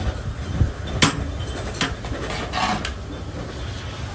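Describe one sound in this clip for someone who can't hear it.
A metal spoon scrapes and clinks against a metal pot.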